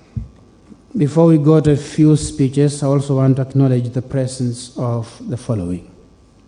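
A man speaks slowly and solemnly into a microphone over loudspeakers in a large echoing hall.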